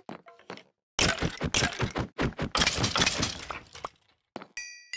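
A sword strikes a creature in quick, loud blows.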